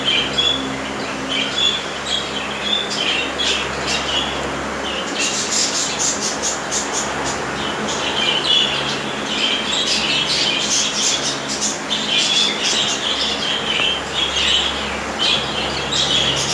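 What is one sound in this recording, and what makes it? Budgerigars chirp and chatter rapidly nearby.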